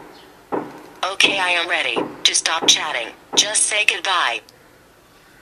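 A synthetic female voice speaks calmly through a small phone speaker.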